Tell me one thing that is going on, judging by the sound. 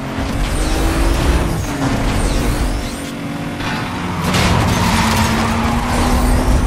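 Tyres hiss on the road at speed.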